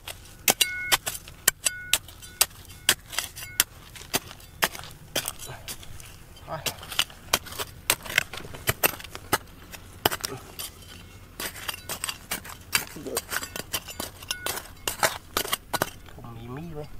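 A metal trowel scrapes and digs into dry dirt and gravel.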